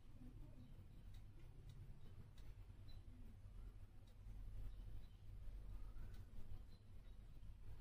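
Hands knead and press soft dough.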